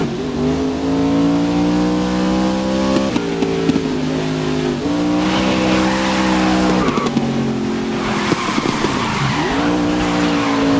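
A race car engine roars, its pitch climbing and dropping as it shifts gears.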